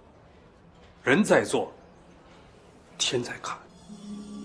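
An older man speaks firmly, close by.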